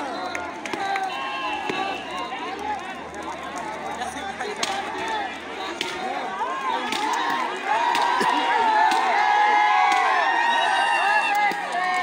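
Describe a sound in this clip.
A large crowd of people shouts and cheers outdoors, growing louder.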